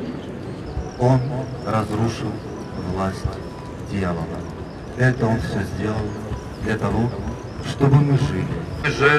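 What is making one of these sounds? A middle-aged man speaks calmly through a microphone over loudspeakers.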